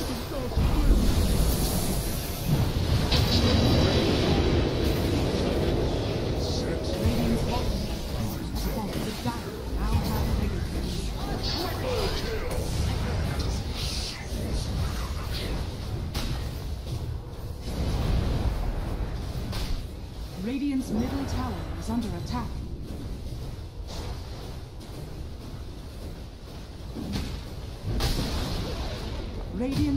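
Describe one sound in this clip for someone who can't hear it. Magic blasts crackle and boom in a busy fight.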